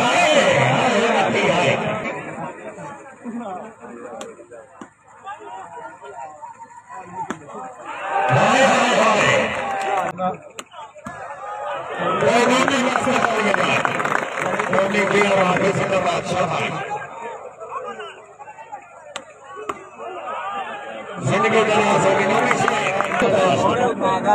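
A large crowd cheers and shouts loudly outdoors in bursts.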